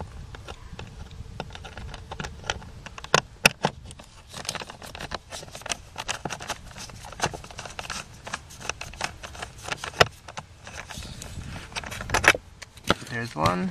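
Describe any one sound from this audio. A socket wrench ratchets with quick, light clicks.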